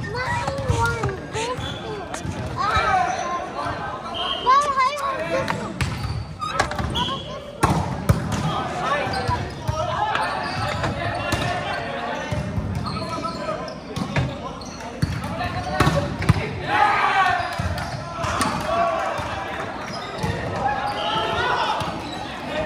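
Players call out and shout to each other in a large echoing hall.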